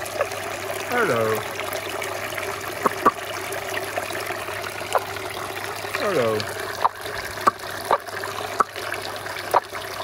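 Water splashes lightly close by.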